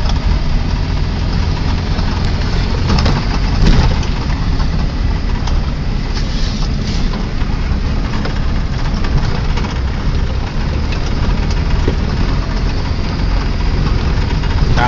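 A vehicle bumps and rattles over a rough dirt track.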